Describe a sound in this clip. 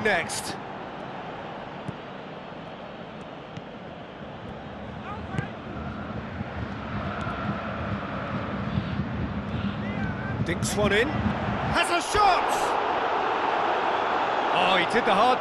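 A large stadium crowd roars steadily and grows louder.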